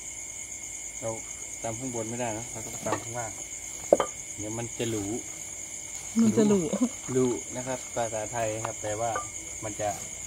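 A man speaks calmly and close by.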